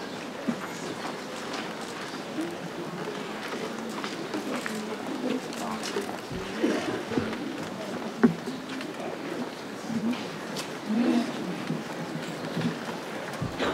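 A crowd of men and women murmurs and chats nearby outdoors.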